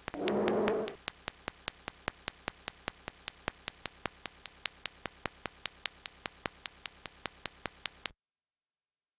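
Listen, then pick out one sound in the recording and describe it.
Footsteps tap steadily as a person walks closer.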